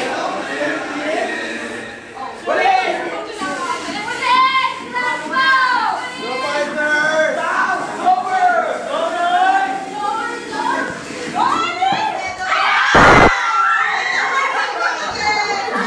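A young woman sings loudly through a microphone.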